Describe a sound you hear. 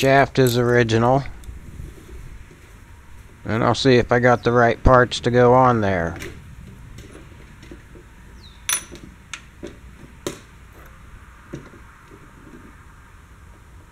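A metal knob clicks and scrapes as it is worked off a lever rod.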